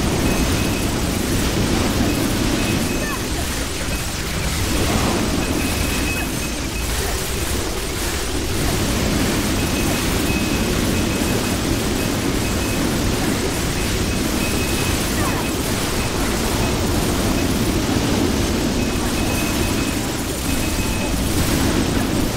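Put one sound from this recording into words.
Game spell effects crackle and burst rapidly.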